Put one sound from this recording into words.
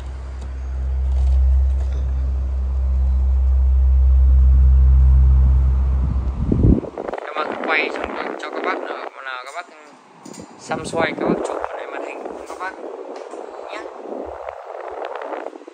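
Hands knock and rattle against a metal fan.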